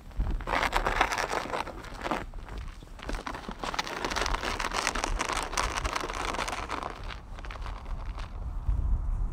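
Wind blows across open ground.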